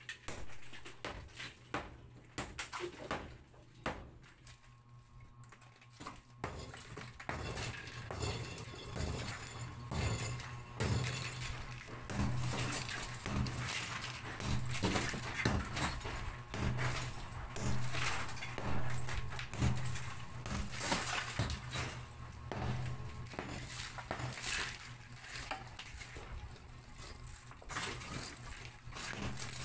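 A hammer bangs sharply against concrete, again and again.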